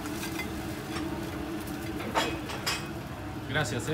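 A wire fry basket clatters and shakes as fries are tipped out.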